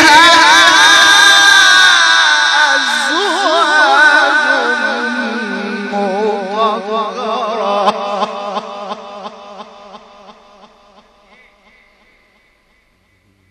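A man chants in a long, wavering melody through a microphone and loudspeakers, fading away to silence.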